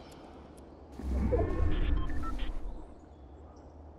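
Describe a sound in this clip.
A game alert tone sounds.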